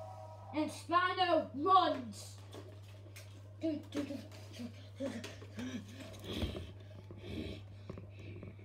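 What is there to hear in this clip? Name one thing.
A young child squeals and roars playfully up close.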